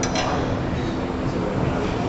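A chisel scrapes against spinning wood.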